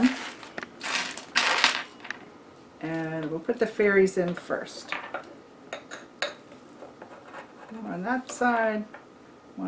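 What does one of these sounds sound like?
Small glass beads click and rattle as a hand sorts them.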